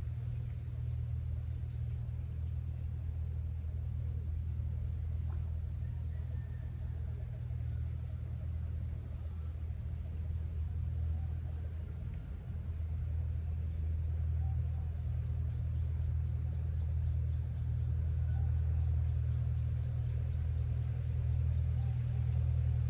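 Wind rumbles low and steadily against the microphone outdoors.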